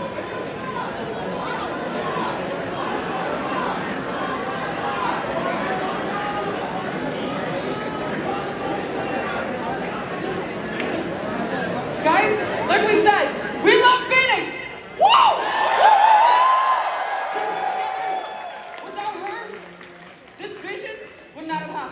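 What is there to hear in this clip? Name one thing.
A crowd chatters and cheers loudly in a large echoing hall.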